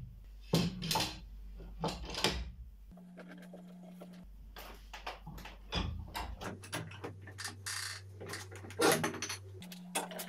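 Metal clamps click and squeak as they are tightened.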